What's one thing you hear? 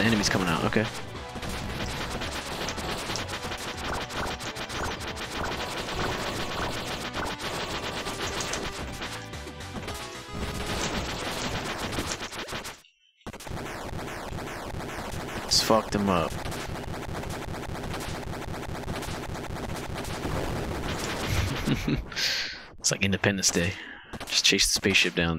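Fast electronic game music plays steadily.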